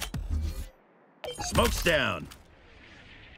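A sharp electronic burst flares up and fades.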